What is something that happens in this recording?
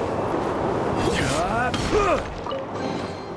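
A chest bursts open with a whooshing gust.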